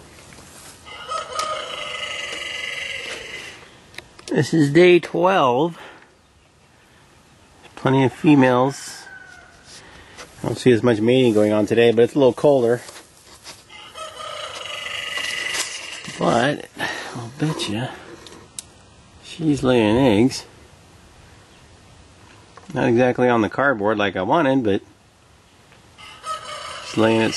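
A parrot squawks loudly nearby.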